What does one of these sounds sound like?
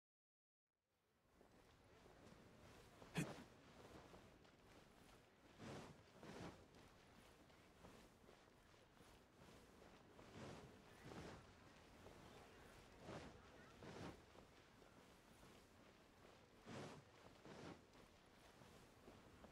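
Footsteps run over stone.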